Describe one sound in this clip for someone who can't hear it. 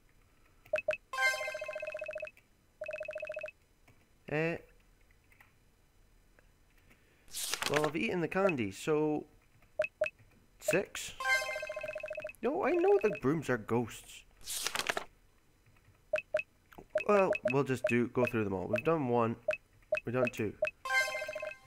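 Short chiming game tones play.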